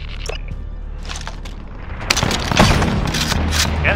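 A rifle clicks and clatters as it is handled.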